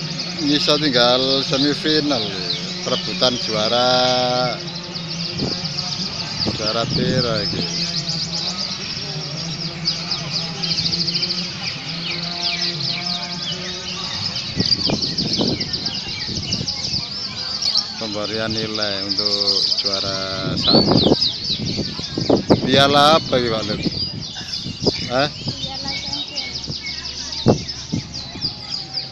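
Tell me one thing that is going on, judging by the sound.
Men talk and call out among a crowd outdoors.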